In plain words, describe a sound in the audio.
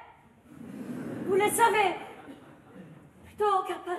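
A young woman sings loudly and dramatically in a large hall.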